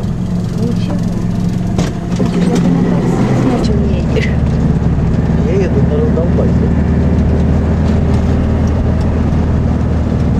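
A minibus engine hums steadily as the vehicle drives along.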